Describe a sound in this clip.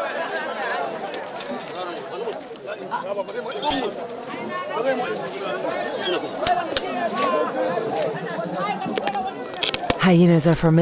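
A crowd of men and boys chatters and calls out outdoors.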